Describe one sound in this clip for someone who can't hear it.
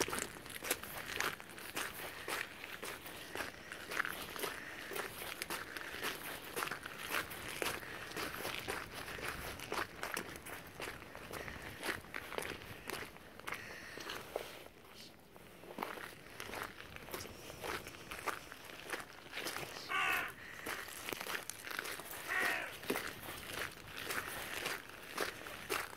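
A dog's paws patter across wet sand and pebbles.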